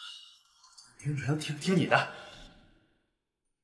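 A young man answers hesitantly, close by.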